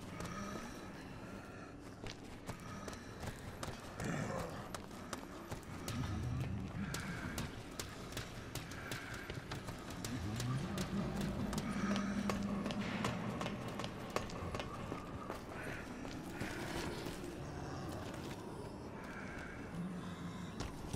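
Footsteps tread on a hard floor and metal stairs.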